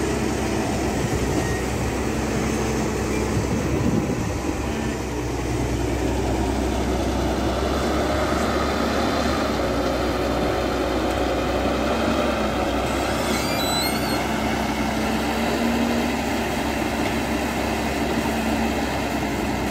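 A diesel excavator engine rumbles steadily nearby.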